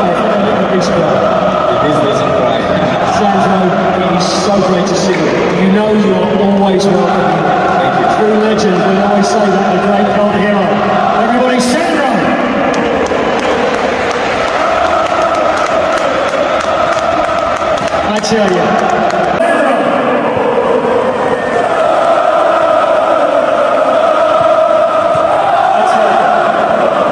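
A large crowd of football fans chants in unison in a big open stadium.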